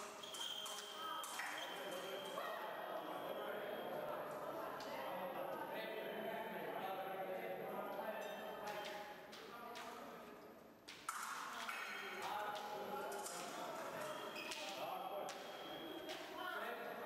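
Voices murmur in a large echoing hall.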